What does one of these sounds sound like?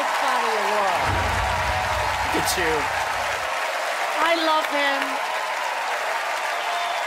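A large studio audience applauds loudly.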